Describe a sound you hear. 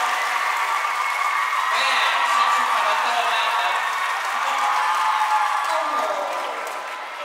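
Drums beat in a large echoing hall.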